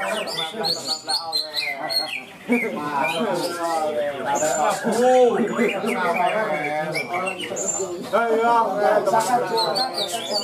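Caged birds chirp and sing.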